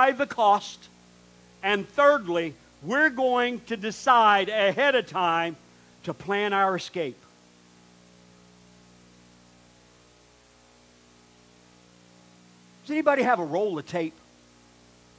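A man speaks with animation into a microphone, with long pauses.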